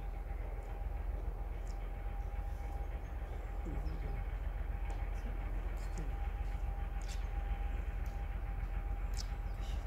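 A train rumbles faintly in the distance.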